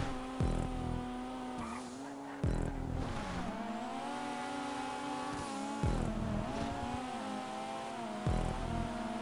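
A car engine revs high and steady, shifting gears with thumps.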